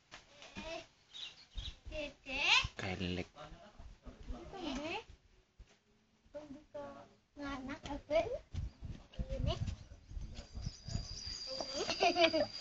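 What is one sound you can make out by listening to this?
A woman talks gently, close by.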